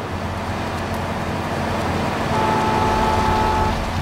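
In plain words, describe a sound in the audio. Footsteps run on asphalt.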